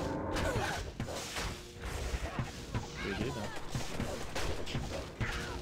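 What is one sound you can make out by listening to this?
Spells burst and crash in rapid, repeated blasts.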